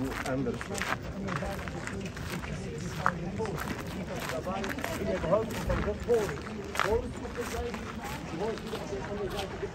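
A crowd of men and women chatters nearby outdoors.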